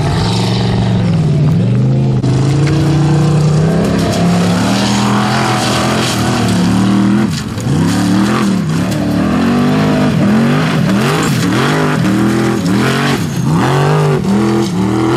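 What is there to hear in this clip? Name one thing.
Loose stones and gravel crunch and spray under spinning tyres.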